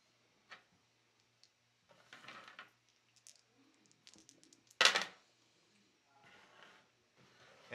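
Game pieces tap on a table as a hand moves them.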